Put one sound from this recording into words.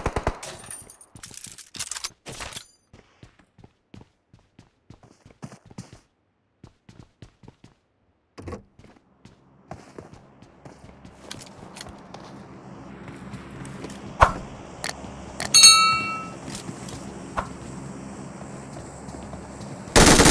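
Footsteps thud across a hard floor.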